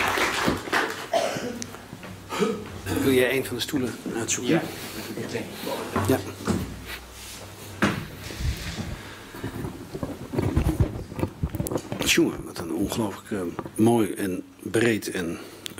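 A man speaks calmly through a microphone in an echoing hall.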